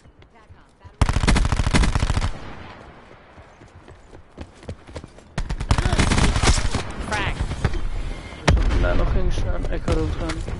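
Guns fire in rapid bursts of shots.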